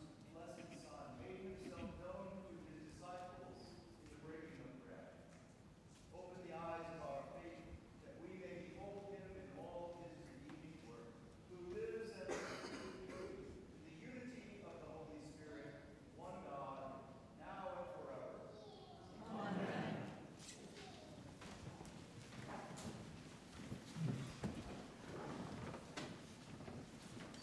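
A woman reads aloud calmly through a microphone in a reverberant hall.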